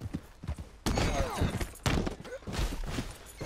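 A man grunts as he tumbles to the ground.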